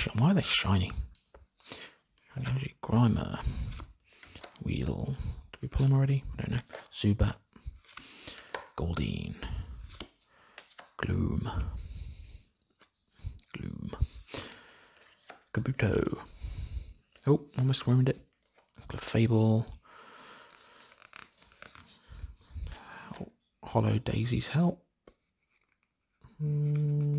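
Playing cards slide and rustle softly against each other.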